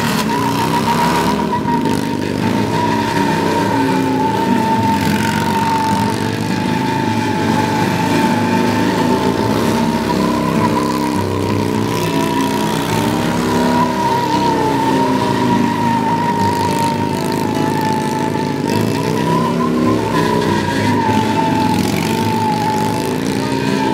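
A motorcycle's rear tyre screeches as it spins on pavement.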